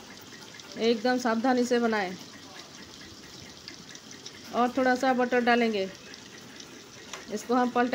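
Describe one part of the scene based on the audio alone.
Butter sizzles softly in a hot frying pan.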